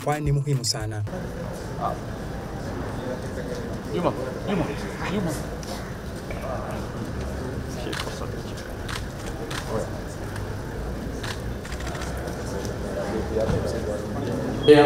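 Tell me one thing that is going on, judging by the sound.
People murmur and chat quietly nearby.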